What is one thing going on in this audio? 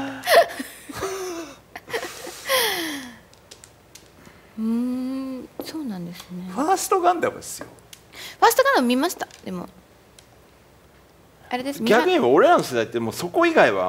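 Mahjong tiles click and clack against one another on a table.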